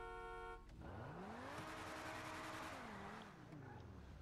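A car engine revs and then settles.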